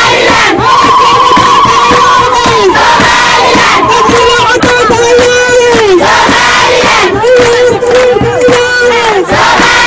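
A crowd of women sings and chants loudly outdoors.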